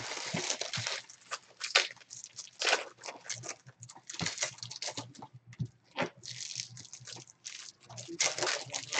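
Plastic-wrapped card packs rustle and slide as hands shuffle them.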